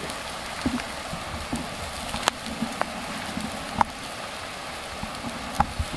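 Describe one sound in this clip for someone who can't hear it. Meat sizzles and crackles over a wood fire.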